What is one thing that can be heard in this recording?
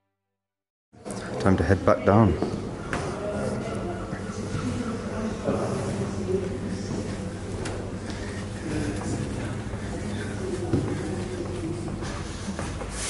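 Footsteps thud and creak on wooden stairs and floorboards.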